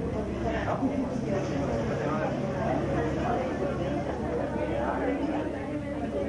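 Men and women talk and exclaim warmly close by.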